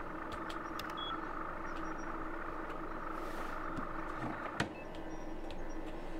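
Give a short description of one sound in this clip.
Machine fans hum steadily.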